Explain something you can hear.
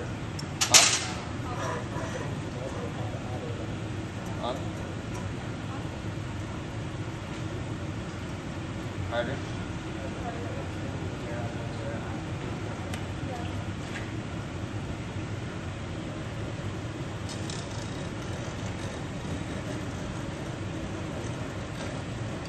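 A furnace roars steadily nearby.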